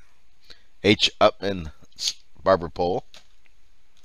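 A man speaks casually and close into a headset microphone.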